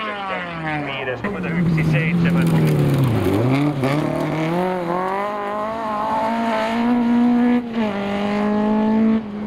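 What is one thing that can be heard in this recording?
A second rally car engine screams and revs as it speeds past.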